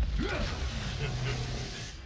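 An energy beam crackles and sizzles.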